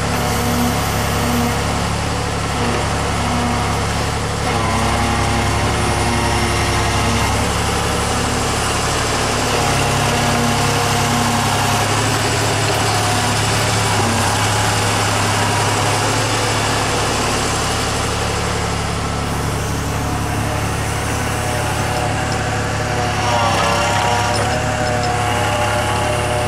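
Snow crunches and scrapes under an excavator's bucket.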